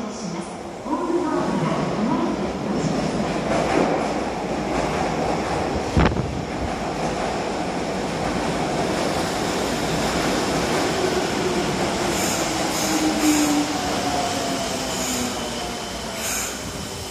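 A subway train rumbles into the station and slows with a rushing roar.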